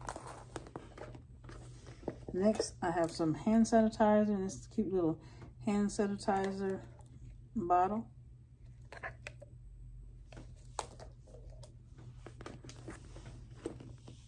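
A clear plastic bag crinkles as hands reach into it.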